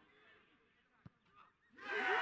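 A ball is kicked with a sharp thud.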